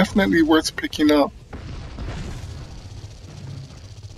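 A large explosion booms.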